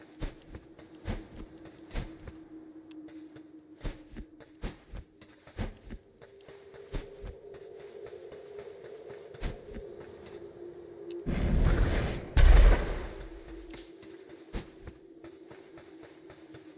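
Low game music drones steadily.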